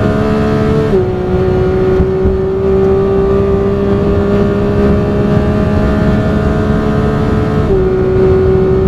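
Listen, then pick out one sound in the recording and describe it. A racing car engine drops in pitch sharply as it shifts gear.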